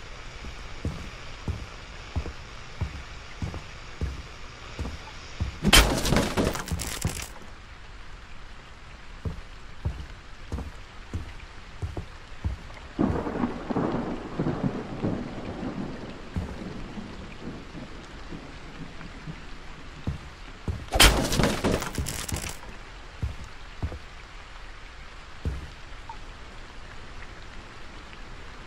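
Heavy footsteps thud slowly on a wooden floor.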